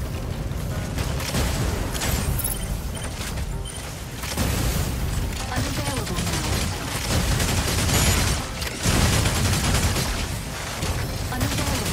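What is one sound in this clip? A robot's jet thrusters roar steadily.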